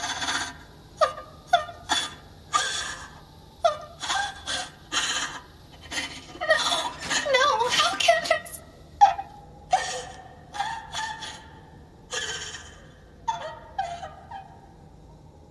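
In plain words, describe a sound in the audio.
A robotic male voice speaks in distress, haltingly.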